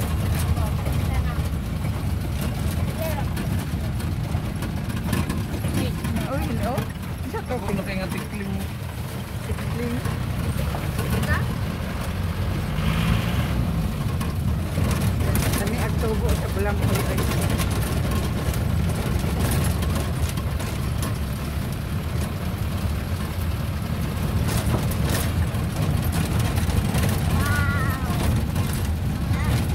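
A vehicle rattles and bumps over a rough dirt road.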